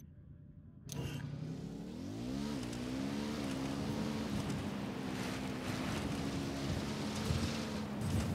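A motorbike engine revs up and then runs with a steady drone.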